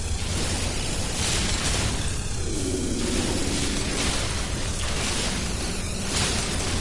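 A mining laser hums and crackles steadily.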